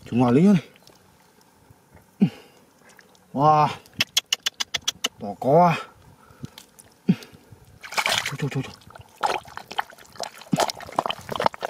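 Muddy water sloshes and splashes close by.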